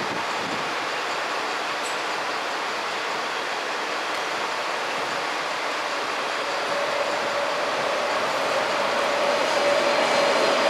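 A train rolls slowly along, its wheels rumbling and clattering on the rails.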